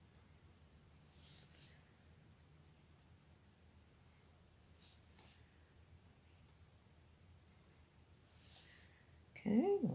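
A marker squeaks and scratches across paper in short strokes.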